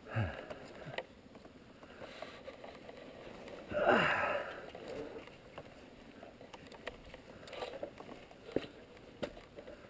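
A motorcycle jolts and rattles over bumps.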